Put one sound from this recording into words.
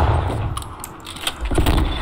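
A rifle bolt clicks as it is worked.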